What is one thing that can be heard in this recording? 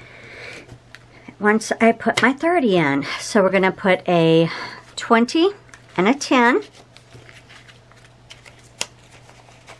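Paper bills rustle and flap as they are counted.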